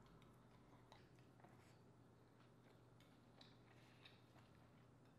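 A woman chews and slurps food wetly, close to a microphone.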